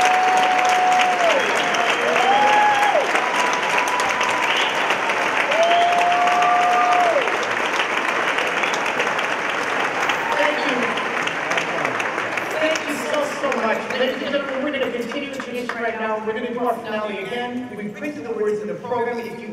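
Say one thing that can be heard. A large children's choir sings in an echoing hall.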